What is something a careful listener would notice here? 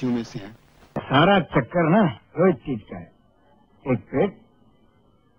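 A young man speaks intensely, close by.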